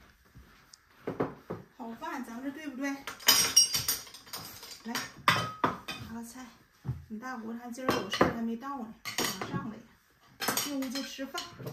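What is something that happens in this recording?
A middle-aged woman talks nearby in a casual voice.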